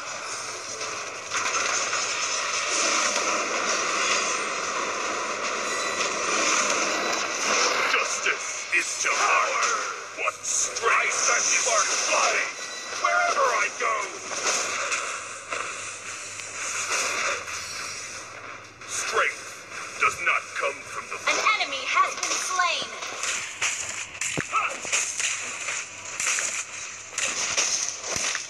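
Game spells and attacks crackle and whoosh.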